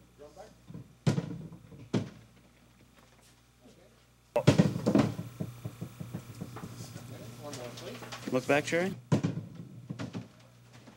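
A metal washtub clanks and rolls on pavement.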